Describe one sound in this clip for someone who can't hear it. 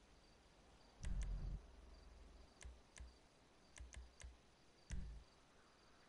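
Short menu clicks and thuds sound as options are selected.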